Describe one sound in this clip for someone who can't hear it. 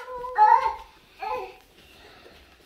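A baby babbles nearby.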